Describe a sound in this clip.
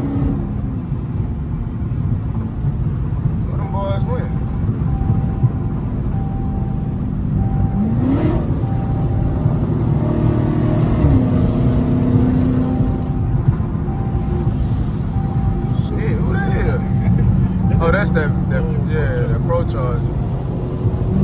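A car engine hums steadily while driving at speed.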